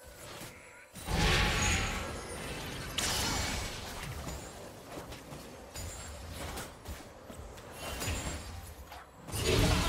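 Game combat sounds thud and clash.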